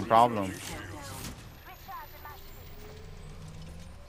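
A device charges up with a rising electronic hum.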